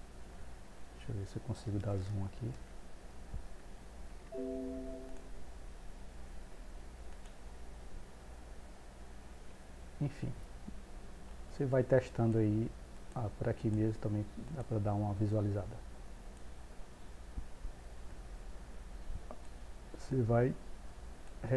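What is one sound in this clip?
A man talks calmly into a nearby microphone.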